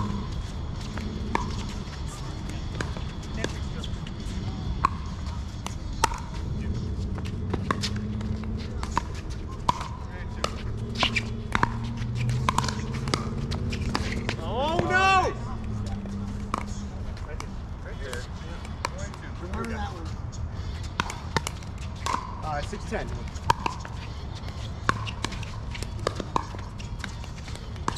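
Paddles pop sharply against a plastic ball, back and forth.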